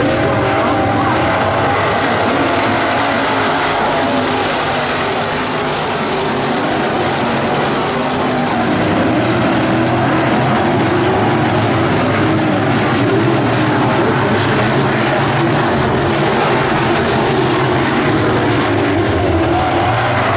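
Race car engines rev up and down through the turns.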